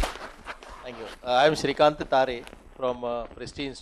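An older man speaks calmly into a handheld microphone.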